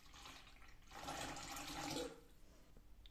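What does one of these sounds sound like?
Liquid pours and splashes into a tall container.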